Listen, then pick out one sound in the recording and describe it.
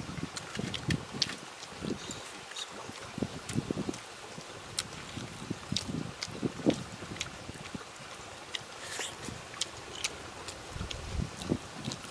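Fingers tear and pick apart crispy grilled fish.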